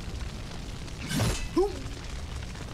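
A sword swishes sharply through the air.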